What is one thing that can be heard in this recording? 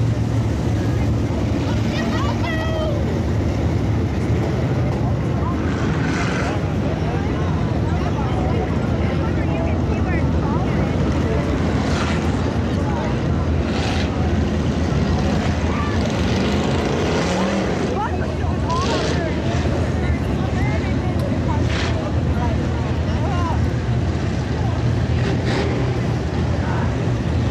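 Race car engines roar steadily around a dirt track outdoors.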